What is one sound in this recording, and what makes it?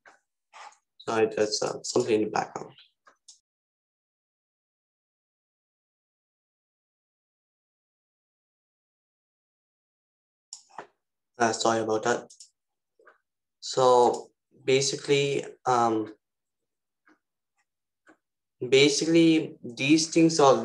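A young man speaks calmly through a computer microphone, in short bursts with pauses.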